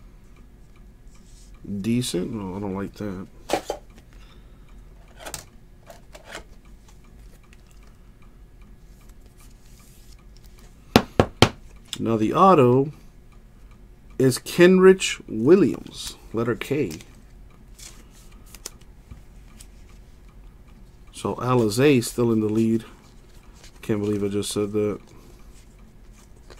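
Trading cards rustle and click as they are handled.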